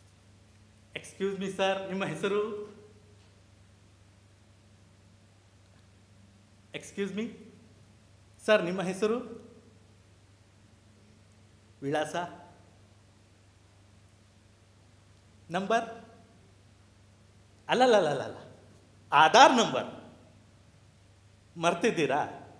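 A man speaks expressively in short bursts on a stage, in an echoing hall.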